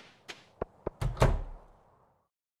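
A door opens and shuts with a thud.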